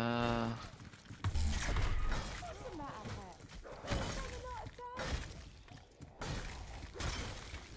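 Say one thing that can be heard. Zombies growl and snarl.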